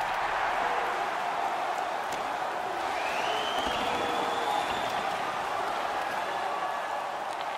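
A large arena crowd roars steadily.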